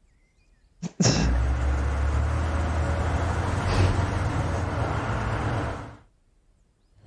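A tractor engine starts and rumbles loudly.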